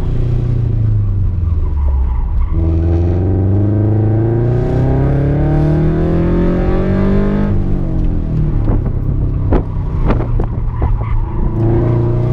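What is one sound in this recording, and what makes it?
A car engine revs hard up close, rising in pitch and then dropping.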